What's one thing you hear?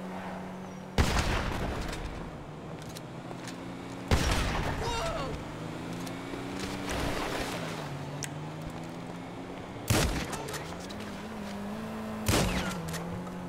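Loud gunshots ring out with echoes, a few seconds apart.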